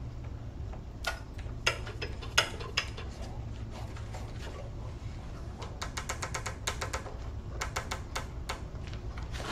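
A chisel scrapes and chatters against spinning wood.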